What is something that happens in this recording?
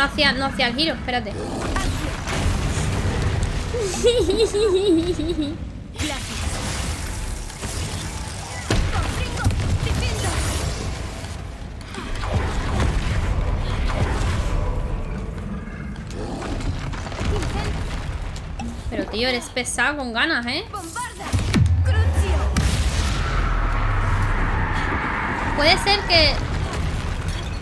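Spells crackle and explode with deep rumbles.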